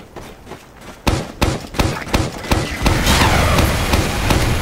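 A grenade launcher fires repeatedly with hollow thumps.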